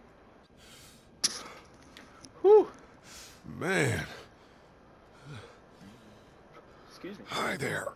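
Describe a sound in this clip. A man breathes heavily and groans.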